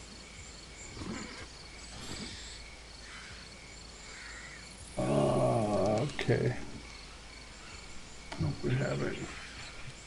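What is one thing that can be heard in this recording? A man speaks casually into a close microphone, in short bursts.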